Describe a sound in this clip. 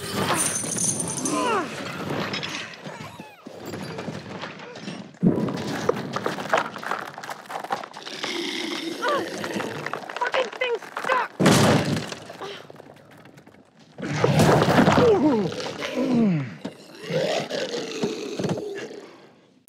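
A creature snarls and shrieks close by.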